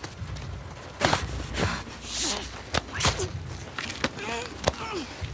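A man gasps and chokes as he struggles.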